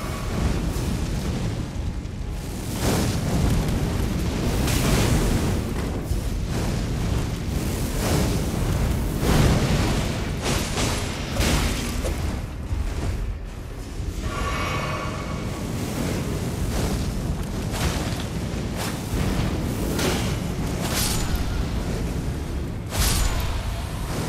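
Blades clash and strike with sharp hits.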